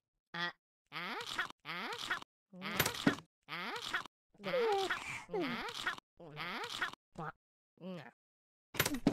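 A cartoon cat chews and munches food noisily.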